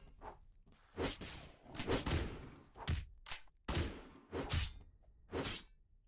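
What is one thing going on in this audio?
Large wings flap in heavy, repeated whooshes.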